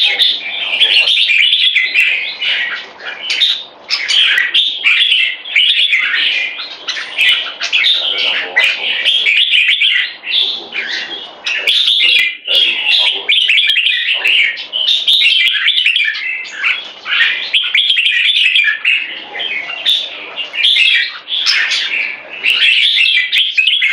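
Small songbirds chirp and warble loudly, almost without pause.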